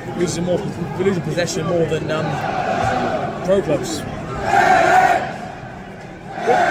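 A large crowd of football fans sings and chants in an open stadium.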